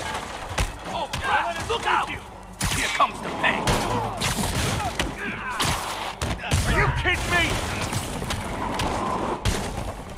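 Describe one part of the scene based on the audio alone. Wooden crates and planks crash and splinter.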